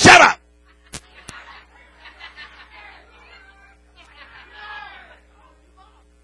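A crowd murmurs and chatters softly.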